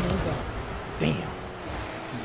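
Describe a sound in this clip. A ball is struck with a loud thump.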